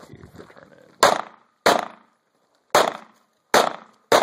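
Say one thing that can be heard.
A handgun fires shots outdoors.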